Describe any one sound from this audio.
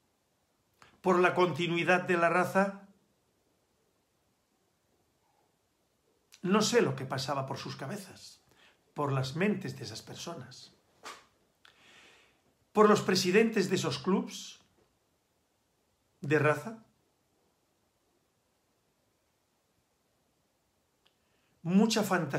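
An elderly man speaks calmly into a microphone at close range, with long pauses.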